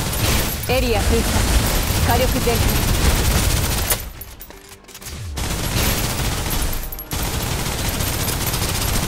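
A rapid-fire energy gun fires in bursts.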